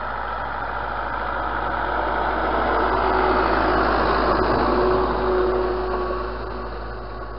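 A tractor engine rumbles steadily nearby.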